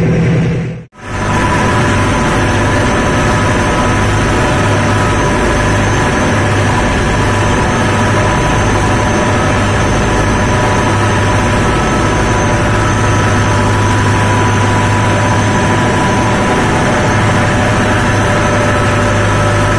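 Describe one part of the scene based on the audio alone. A ship's engine drones loudly and steadily nearby.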